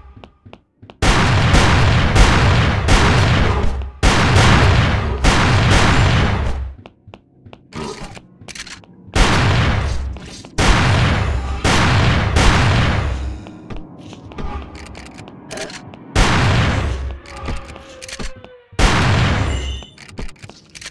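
Loud gunshots and explosions blast in heavy bursts.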